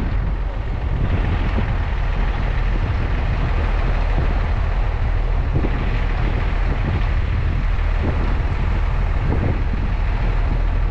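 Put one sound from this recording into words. A vehicle's engine rumbles steadily as it drives along a road.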